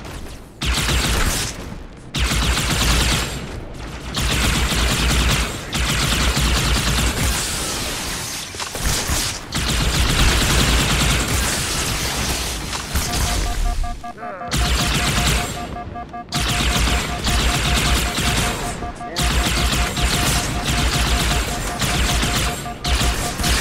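A weapon fires loud bursts of roaring flame, again and again.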